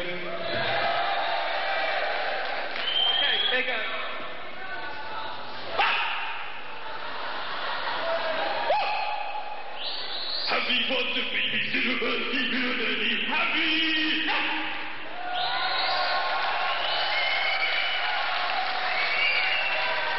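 A rock band plays loudly with electric guitars.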